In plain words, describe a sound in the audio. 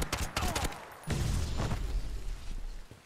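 An energy blast crackles and bursts.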